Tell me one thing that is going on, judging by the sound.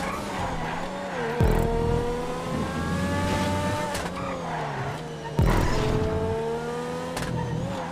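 A racing car engine roars, revving up and dropping sharply with each gear change.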